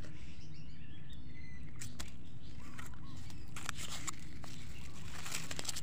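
A plastic bag crinkles and rustles close by.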